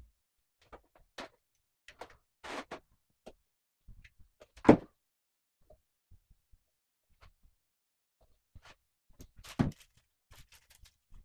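A large plastic panel knocks and creaks as it is handled.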